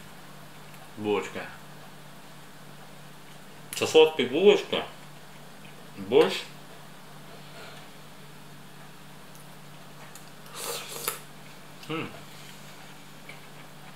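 A spoon clinks against a bowl.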